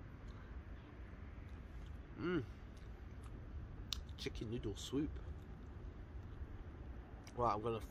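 A young man chews and munches on food.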